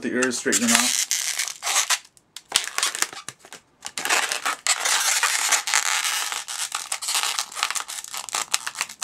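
Rubber balloons squeak and rub as they are twisted.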